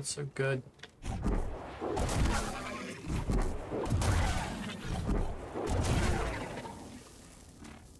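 Lightsabers hum and clash in a loud fight.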